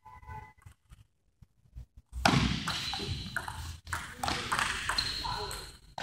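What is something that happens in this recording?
A table tennis ball clicks back and forth between paddles and the table in a large echoing hall.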